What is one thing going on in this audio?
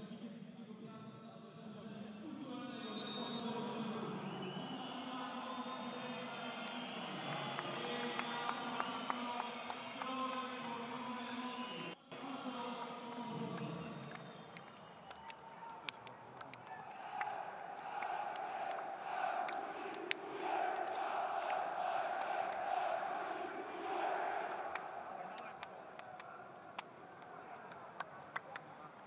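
A large crowd murmurs and chants throughout a big open stadium.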